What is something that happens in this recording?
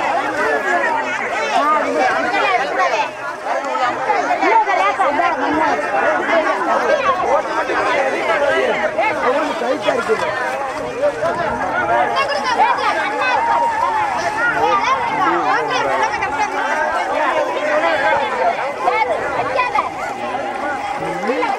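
A large crowd of women and men chatter and call out loudly outdoors.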